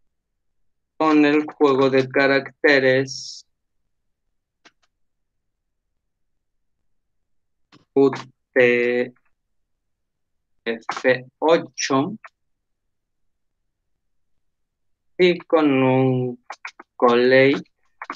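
A man speaks calmly in short phrases through a microphone, as on an online call.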